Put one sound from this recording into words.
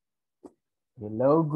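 A young man speaks through an online call.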